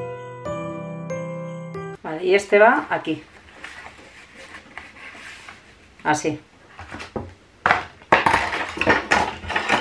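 Paper rustles and slides as hands handle it.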